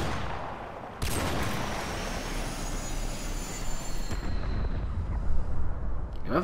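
A loud explosion booms and rumbles away slowly.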